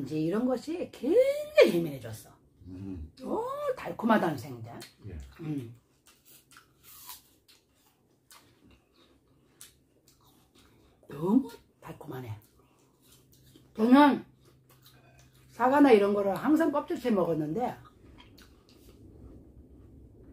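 Men chew and smack their lips while eating.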